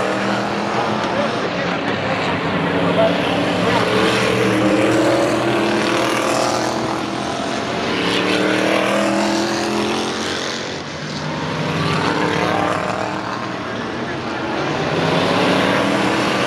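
Loud racing car engines roar past, rising and falling in pitch as they pass.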